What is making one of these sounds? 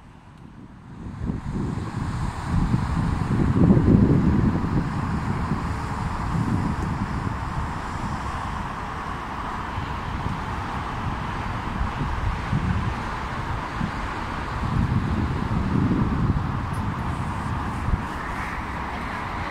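Inline skate wheels roll and rumble on an asphalt path outdoors.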